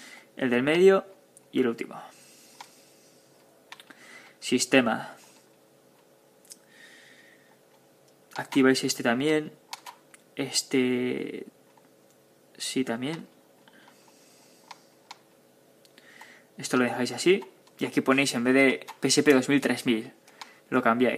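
Buttons on a handheld game controller click softly.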